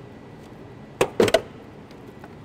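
Plastic trim clicks and snaps as a hand pulls it from a car.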